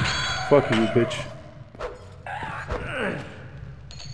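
A skeleton's bones clatter as it collapses.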